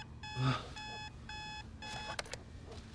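A phone beeps several times in quick short tones.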